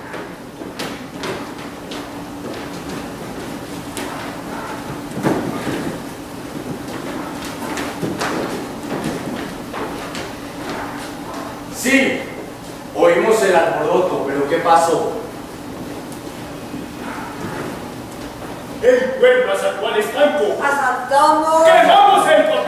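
Footsteps thud on a wooden stage floor.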